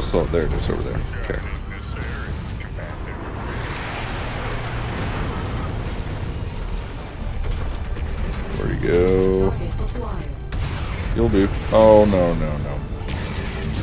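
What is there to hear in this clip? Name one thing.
A man speaks into a close microphone.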